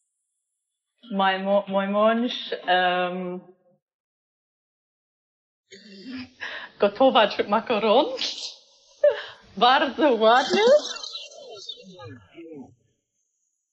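A woman talks calmly and cheerfully, close by.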